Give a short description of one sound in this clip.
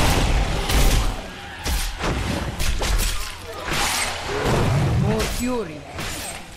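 Weapons strike and slash against monsters in rapid, heavy blows.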